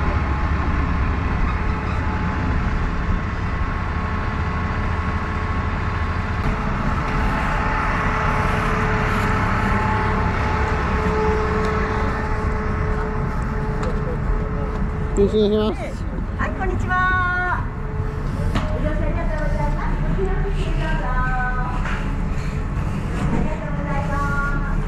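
A train rumbles steadily nearby.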